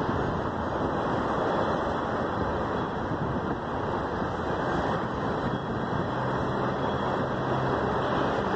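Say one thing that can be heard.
Freight train cars roll past close by with a loud, steady rumble and clatter of wheels on the rails.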